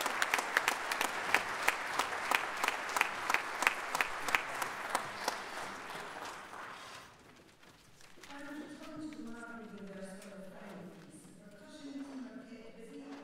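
A brass band plays a tune in a large echoing hall.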